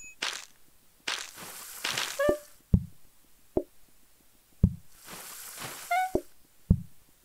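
Water runs from a tap into a sink in short bursts.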